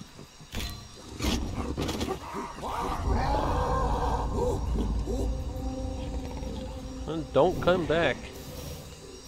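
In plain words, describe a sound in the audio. An ape shrieks loudly and wildly.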